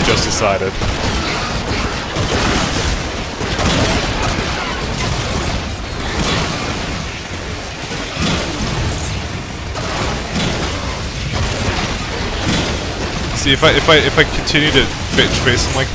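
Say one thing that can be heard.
An electric weapon crackles and buzzes.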